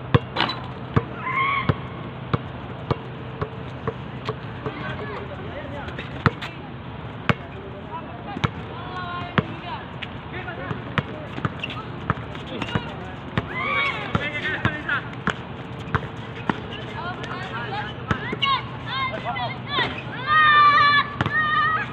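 Young men shout and call out to each other during a game, outdoors.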